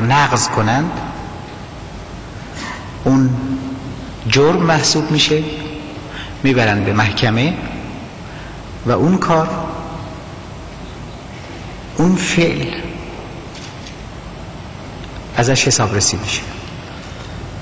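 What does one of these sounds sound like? A middle-aged man speaks forcefully into a microphone in bursts, with pauses that echo in a large hall.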